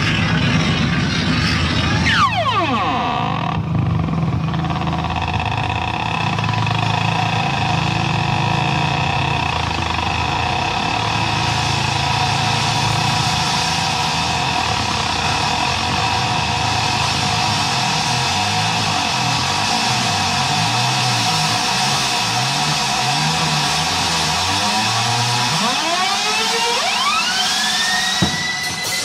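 A keyboard plays loud, sustained chords.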